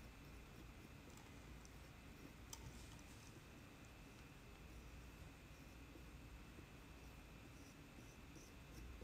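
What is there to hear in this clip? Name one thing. A metal tool scrapes softly against dry clay.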